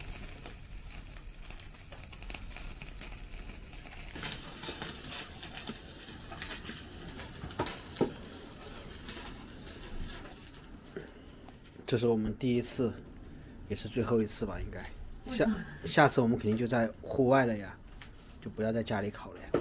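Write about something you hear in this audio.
Meat sizzles and crackles over a charcoal grill.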